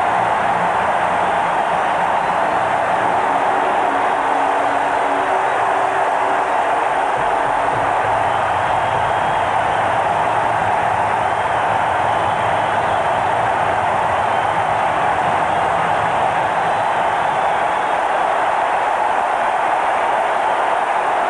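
A large crowd cheers and roars loudly in a big stadium.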